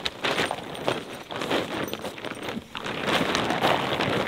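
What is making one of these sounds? A plastic tarp crinkles and rustles as it is spread on the ground.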